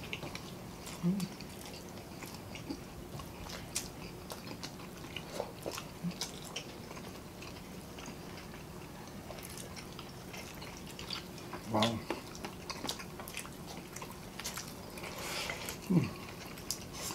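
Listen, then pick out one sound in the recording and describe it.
A young man hums with pleasure while eating.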